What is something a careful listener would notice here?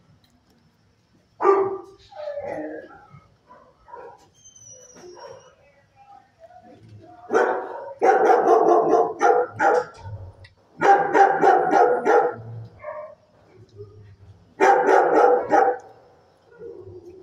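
A large dog sniffs.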